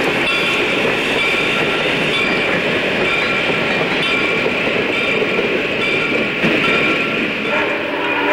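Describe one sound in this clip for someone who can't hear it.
A steam train rumbles and clatters past on the tracks.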